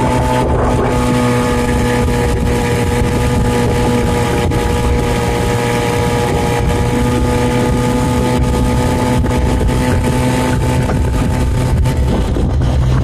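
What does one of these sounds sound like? Water rushes and splashes past a moving boat.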